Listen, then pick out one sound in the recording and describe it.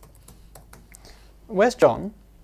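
Fingers tap softly on a laptop keyboard.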